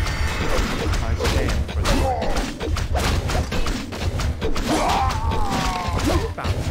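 Swords clash and clang in a skirmish.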